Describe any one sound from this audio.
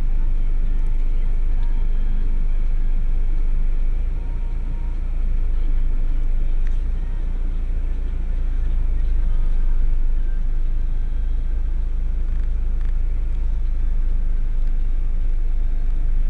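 A vehicle engine rumbles steadily from inside the cabin.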